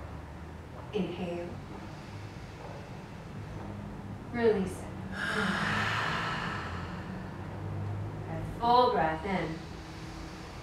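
A woman speaks calmly nearby in short phrases.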